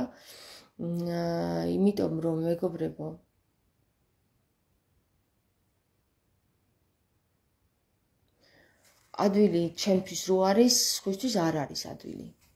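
A young woman speaks calmly and close up, with pauses.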